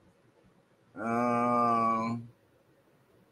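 A man lets out a short, drawn-out vocal sound close to a microphone.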